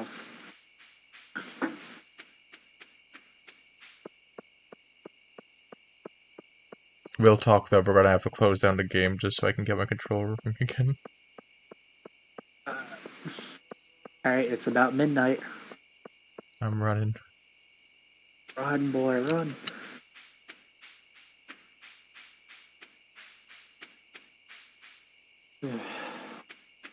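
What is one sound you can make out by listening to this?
Quick, light footsteps tap steadily along a path.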